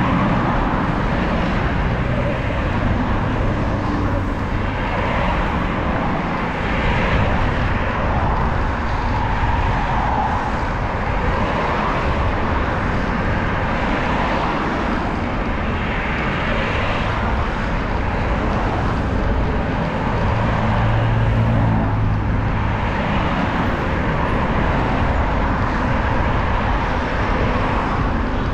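Traffic drives past on a busy road.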